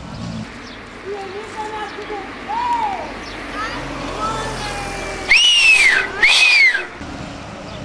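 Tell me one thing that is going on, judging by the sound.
Several women shout and call out excitedly outdoors.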